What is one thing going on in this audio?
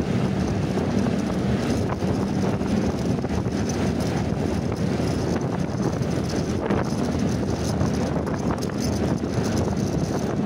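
Traffic rumbles along a busy road.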